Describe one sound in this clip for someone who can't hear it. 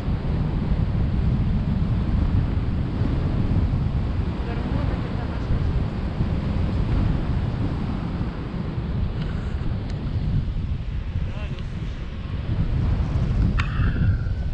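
A man talks calmly close by, partly covered by the wind.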